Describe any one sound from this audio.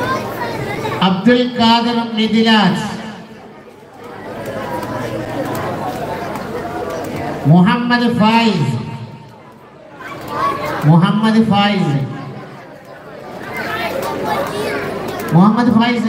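A man chants loudly through a loudspeaker in repeated bursts.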